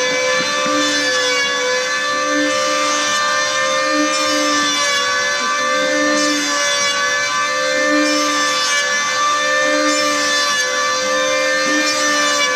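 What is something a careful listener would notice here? A power planer whines steadily while shaving wood.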